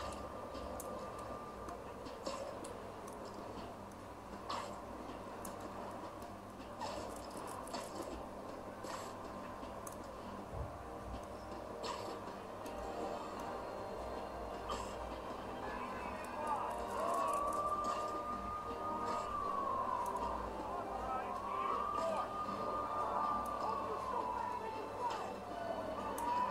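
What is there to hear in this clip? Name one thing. Swooshing video game sound effects play from a laptop speaker.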